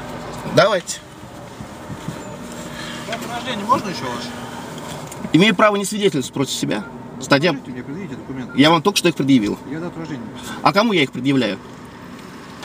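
A man speaks calmly close by, heard through a car window.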